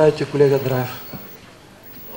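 A middle-aged man speaks briefly into a microphone.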